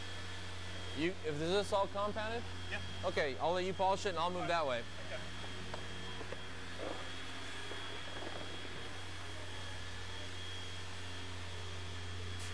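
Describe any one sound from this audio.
Electric polishers hum steadily.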